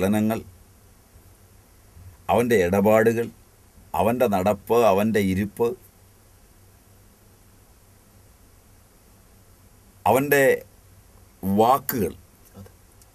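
A middle-aged man speaks close to a microphone with animation, in short bursts with pauses.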